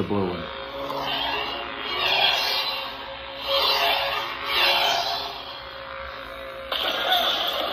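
A toy lightsaber swooshes as it is swung.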